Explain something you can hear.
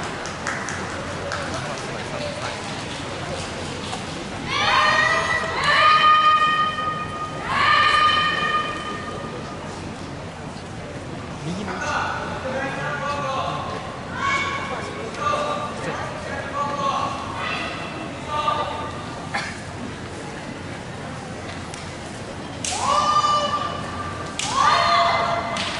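A crowd of young people murmurs and chatters in the background.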